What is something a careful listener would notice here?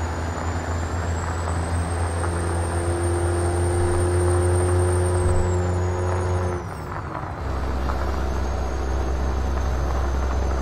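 A heavy truck engine drones steadily, dropping briefly during a gear change.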